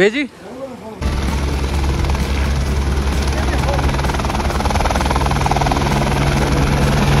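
A helicopter engine drones steadily nearby.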